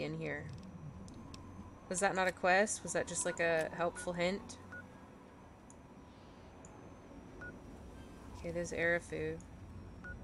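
Device menu selections click softly.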